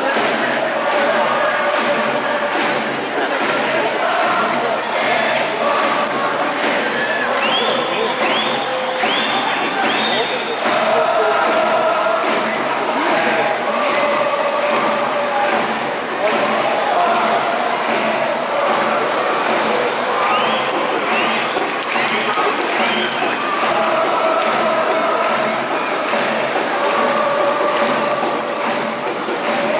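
A large stadium crowd chants and sings loudly in unison.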